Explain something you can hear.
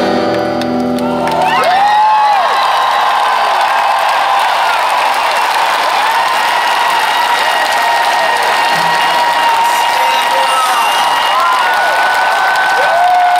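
An electric guitar strums loudly through amplifiers.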